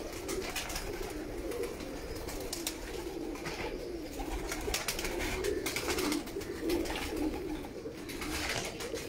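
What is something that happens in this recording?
Pigeons coo softly and steadily close by.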